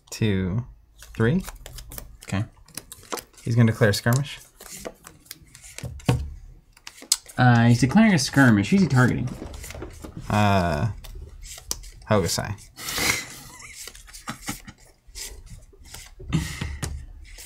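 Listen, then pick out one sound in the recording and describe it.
Game pieces click on a board.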